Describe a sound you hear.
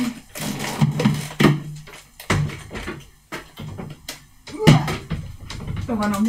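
Kitchen items knock and clatter as they are moved.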